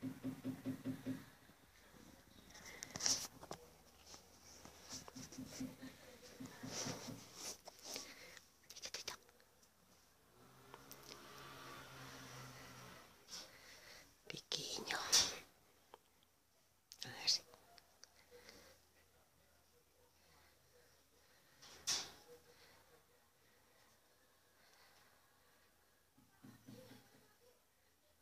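A cat meows repeatedly.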